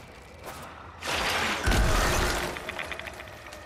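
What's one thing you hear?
A loud blast booms and crackles.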